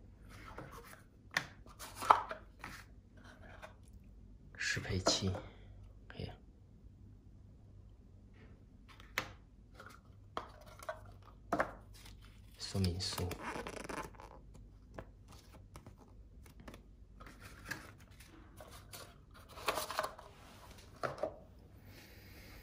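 Cardboard boxes scrape and knock as hands open and handle them.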